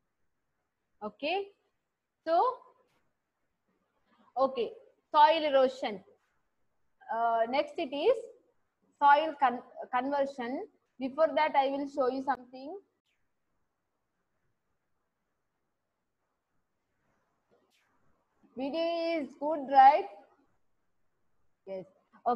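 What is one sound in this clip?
A young woman speaks calmly and close to a headset microphone, in short phrases with pauses.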